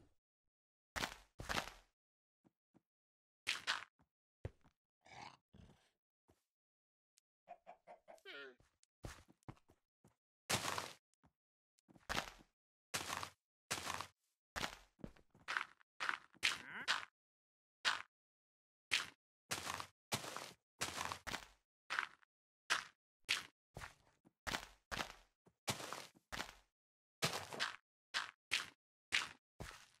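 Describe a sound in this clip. Blocks of dirt and gravel crunch as they are dug out and placed, in short quick bursts.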